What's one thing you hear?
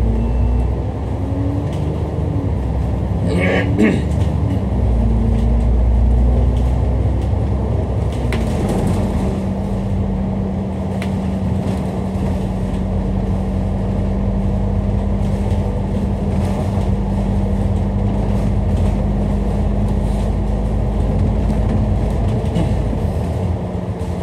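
A vehicle's engine hums steadily while driving along a road.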